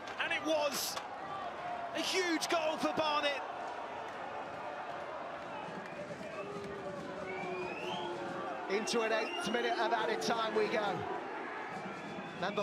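A crowd cheers and shouts loudly in a large open stadium.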